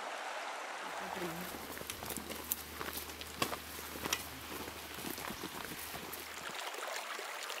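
Footsteps crunch along a forest path.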